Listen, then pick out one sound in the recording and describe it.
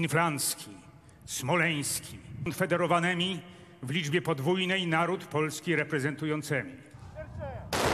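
A man reads out loudly through a loudspeaker outdoors.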